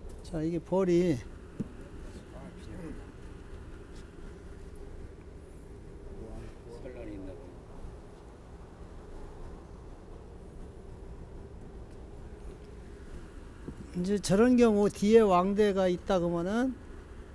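Wooden frames knock against a hive box.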